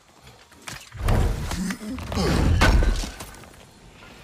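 A heavy chest lid swings open with a deep booming thud.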